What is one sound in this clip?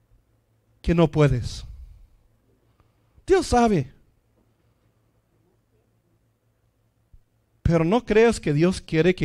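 A middle-aged man speaks into a microphone with animation, in short bursts separated by pauses.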